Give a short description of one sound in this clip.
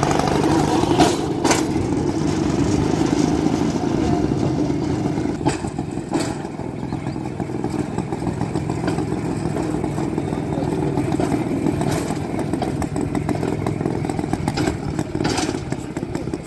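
Wheels click sharply over rail joints.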